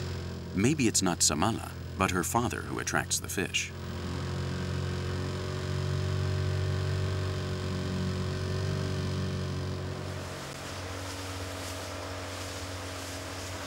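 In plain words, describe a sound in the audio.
An outboard motor hums steadily.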